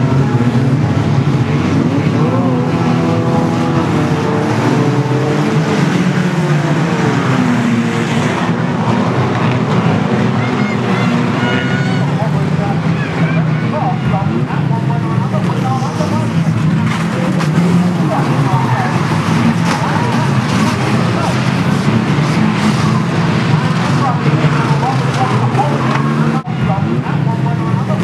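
Car engines roar and rev loudly nearby.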